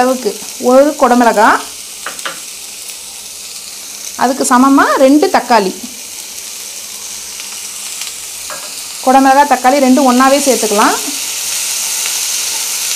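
Vegetables sizzle softly in a hot pan.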